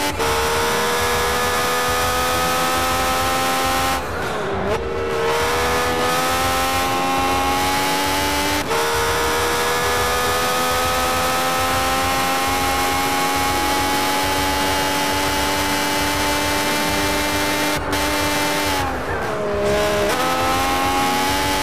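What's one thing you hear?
A racing car engine screams at high revs, dropping in pitch as it shifts down and climbing again through the gears.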